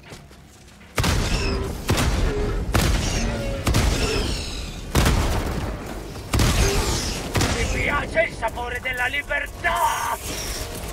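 A heavy gun fires in rapid rattling bursts.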